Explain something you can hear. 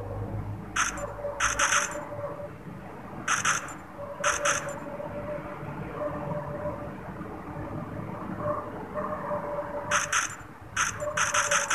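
A rifle fires in quick bursts of sharp, loud shots.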